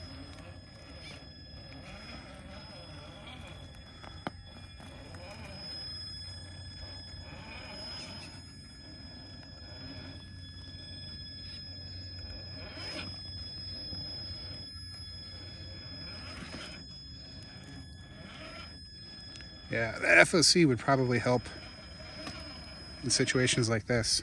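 Small tyres crunch over dry twigs and bark.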